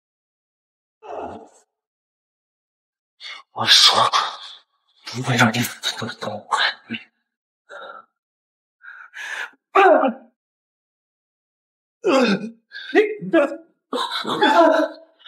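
A man speaks angrily and loudly nearby.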